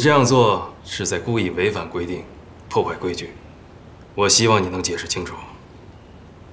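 A middle-aged man speaks sternly and close by.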